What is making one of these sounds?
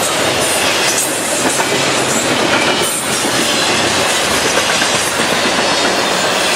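A freight train rumbles and clatters loudly past at close range.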